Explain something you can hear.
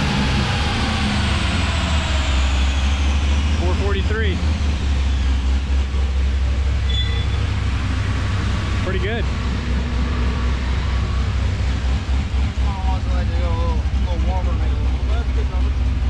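A car engine idles with a deep, low rumble.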